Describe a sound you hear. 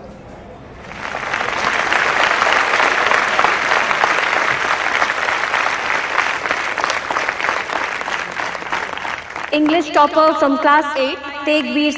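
A large crowd applauds and cheers outdoors.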